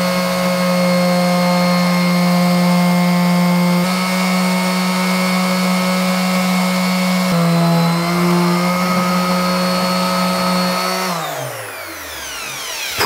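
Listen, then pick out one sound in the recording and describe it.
An electric sander whirs steadily and then winds down.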